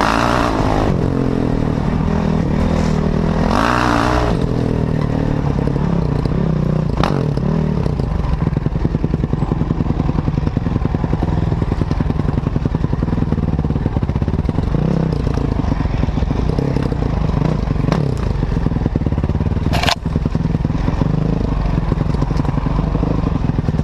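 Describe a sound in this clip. A dirt bike engine roars and revs close by, rising and falling in pitch.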